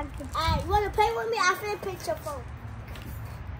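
A young girl speaks brightly and close by.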